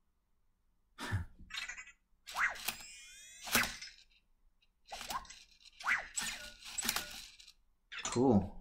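A small robot makes electronic chirps and beeps.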